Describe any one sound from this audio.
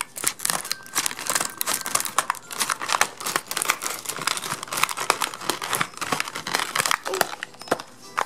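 A plastic wrapper crinkles and rustles as it is handled.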